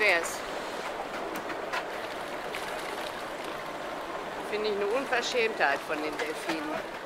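Water splashes and rushes against the side of a moving boat.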